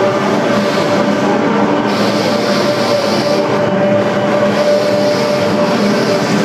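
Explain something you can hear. A hand drum is played with quick beats.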